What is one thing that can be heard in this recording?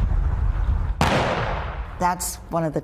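A volley of rifle shots cracks outdoors and echoes away.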